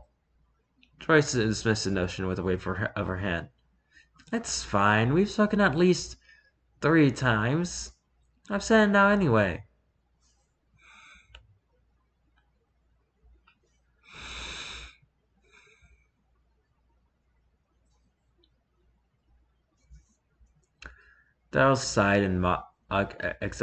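A young woman reads aloud with expression, close to a microphone.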